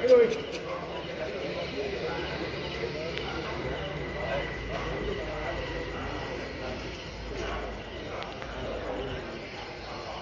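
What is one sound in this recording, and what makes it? A crowd of people chatter in the background of a large room.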